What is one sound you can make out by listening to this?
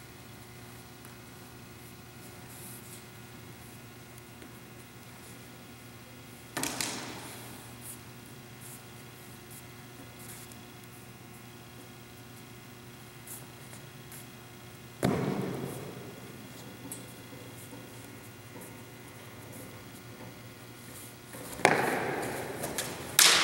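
Shoes scuff and tap on a hard floor.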